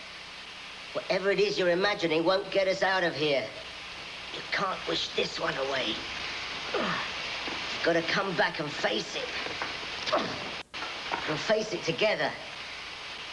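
An elderly man speaks in a low, tense voice nearby.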